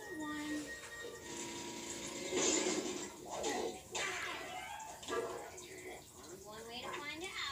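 Cartoon voices and music play from a television loudspeaker.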